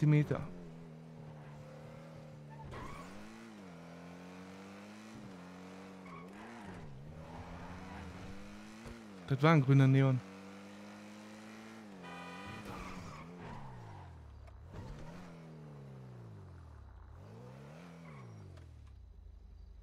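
A car engine revs up and down as the car drives along.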